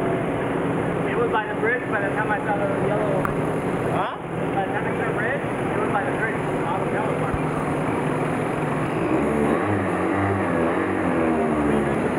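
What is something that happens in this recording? A motorcycle engine runs close by and revs up as the motorcycle pulls away.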